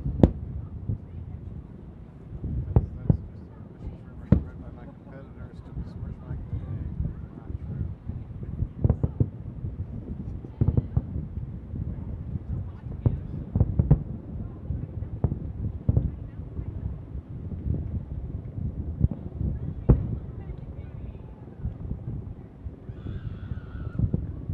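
Distant fireworks boom and thud repeatedly.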